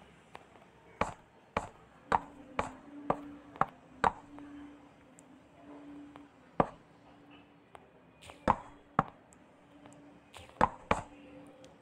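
Blocks are placed with short, sharp knocks, one after another.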